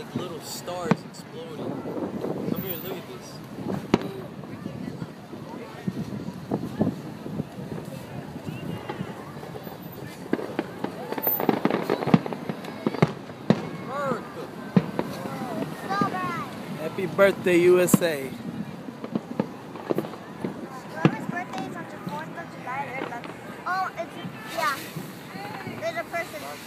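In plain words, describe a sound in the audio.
Fireworks bang and crackle in the distance.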